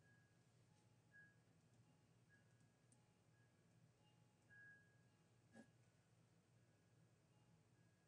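A marker pen writes on paper.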